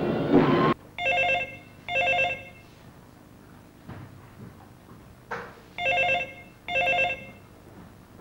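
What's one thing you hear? A telephone rings in short repeated bursts.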